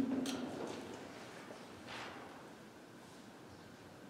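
Footsteps thud softly on a hard floor in an echoing room.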